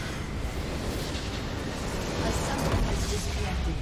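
Magical explosions burst and crackle loudly.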